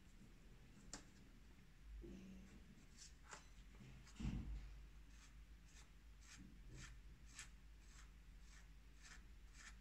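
A nail file rasps against a pen nib.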